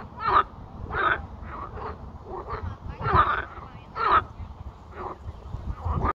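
A frog croaks loudly in short, repeated bursts close by.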